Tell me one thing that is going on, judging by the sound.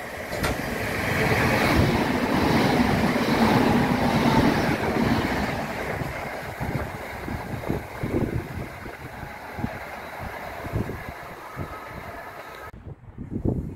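A train rushes past close by with a loud rumble and rattle, then fades into the distance.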